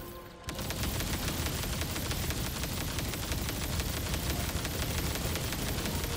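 A rapid-fire gun shoots in a steady, fast stream of loud bursts.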